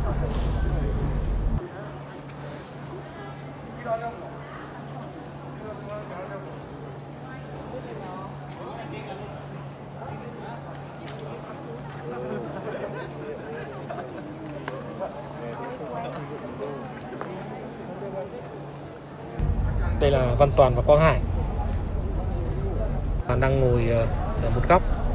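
Men talk in a murmur in a large echoing hall.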